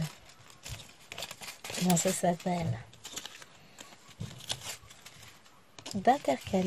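Plastic bags of beads crinkle and rustle as they are handled.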